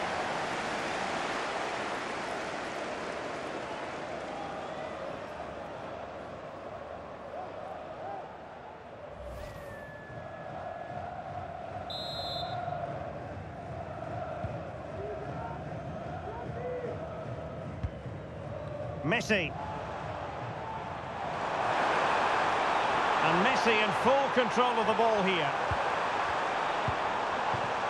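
A stadium crowd roars steadily, swelling louder near the end.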